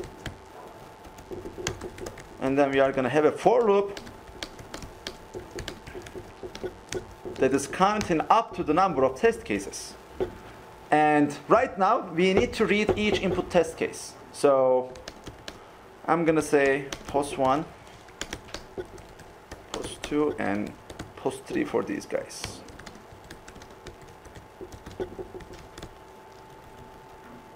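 Keys clatter softly on a keyboard.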